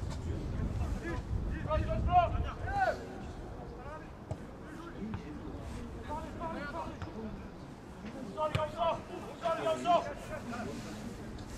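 Young men shout to each other across a field.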